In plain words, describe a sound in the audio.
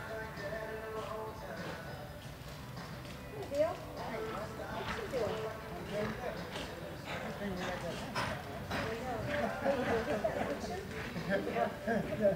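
A horse's hooves thud softly on dirt.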